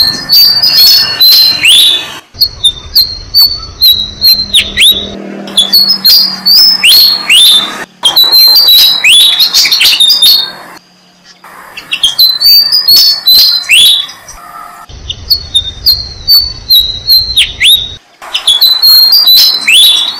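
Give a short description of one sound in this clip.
Baby birds chirp rapidly and shrilly, close by.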